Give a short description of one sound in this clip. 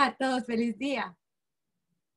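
A young woman speaks cheerfully over an online call.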